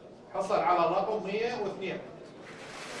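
A man speaks clearly into a microphone, announcing.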